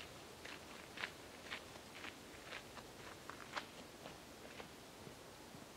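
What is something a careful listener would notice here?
A bicycle rattles and clicks over a dirt trail as it rides away.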